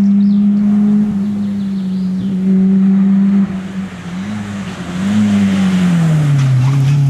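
A rally car engine roars loudly, revving up and down as the car approaches.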